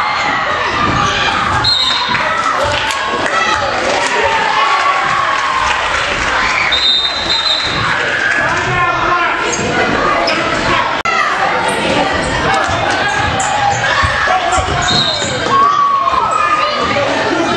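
A crowd of young players and spectators chatters and calls out in an echoing gym.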